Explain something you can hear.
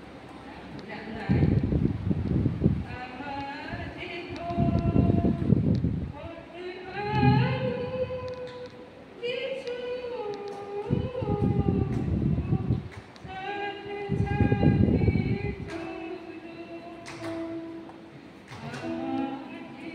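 A woman sings through a loudspeaker in a large echoing hall.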